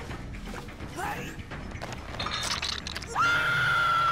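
A young woman screams in pain.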